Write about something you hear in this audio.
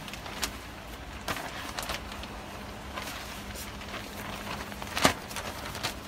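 Plastic film rustles and crinkles.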